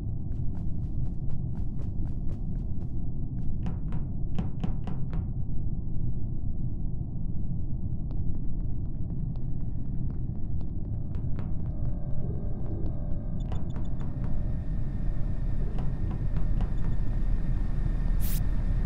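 Quick footsteps tap on a metal floor.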